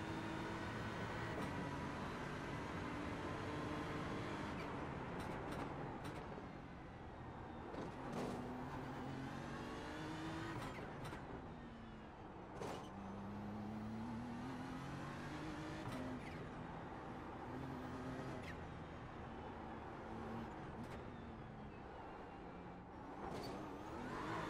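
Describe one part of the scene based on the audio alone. A racing car engine roars, revving up and down as gears shift.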